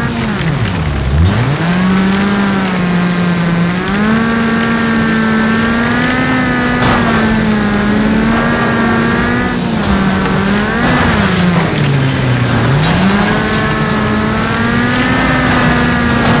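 Tyres skid and slide on loose dirt.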